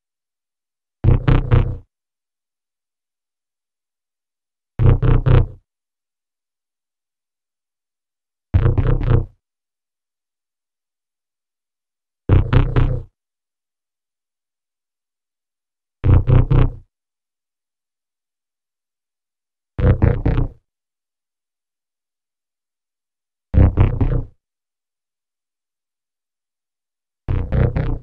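A short, heavily processed sound clip plays again and again, with silence in between.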